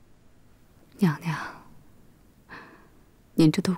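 A woman speaks quietly and gently, close by.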